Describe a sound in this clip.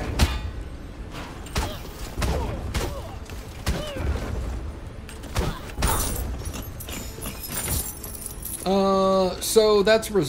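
Sword swings and hits land in quick bursts of sharp knocks.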